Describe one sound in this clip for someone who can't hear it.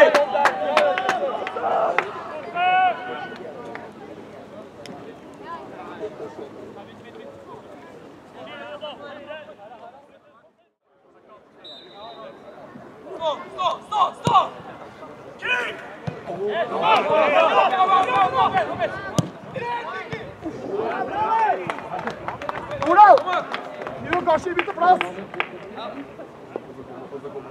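Young male players shout to each other outdoors.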